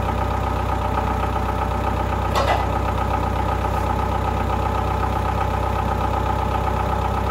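A forklift engine idles with a steady hum.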